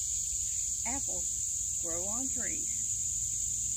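An older woman speaks briefly nearby, outdoors.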